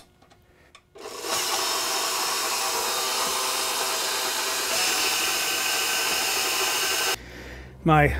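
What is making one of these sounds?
A stand mixer whirs steadily.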